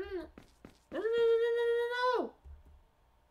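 A man shouts in a long, high mock scream.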